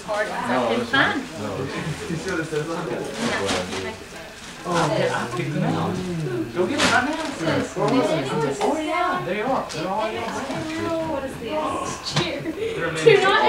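Several adults and children talk and chatter nearby in a small room.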